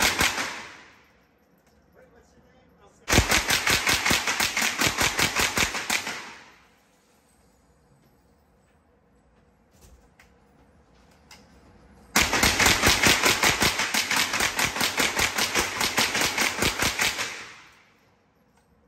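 A submachine gun fires rapid bursts that echo in an indoor range.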